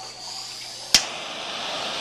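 A handheld tool clicks on.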